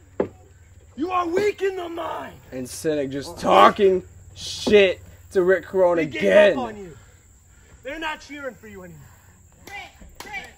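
A man shouts with animation close by, outdoors.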